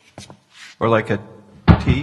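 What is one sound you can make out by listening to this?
A man knocks on a window pane.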